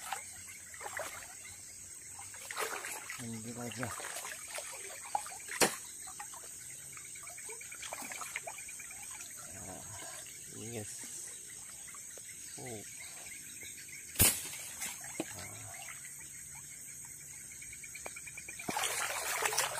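A stream of water rushes and gurgles steadily.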